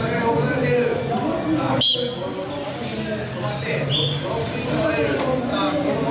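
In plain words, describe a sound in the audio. Several men and boys chatter nearby in an echoing room.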